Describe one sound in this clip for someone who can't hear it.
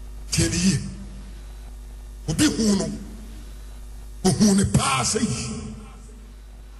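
A man preaches forcefully into a microphone in short bursts.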